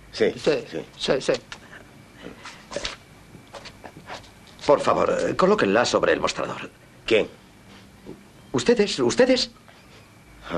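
A middle-aged man speaks firmly and with animation.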